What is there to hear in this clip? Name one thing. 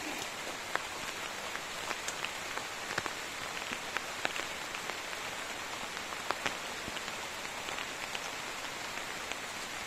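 Boots tread on wet grass.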